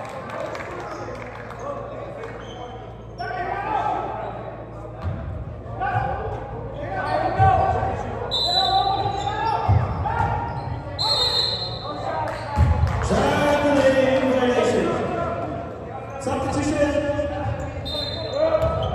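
People chatter and call out in a large echoing gym.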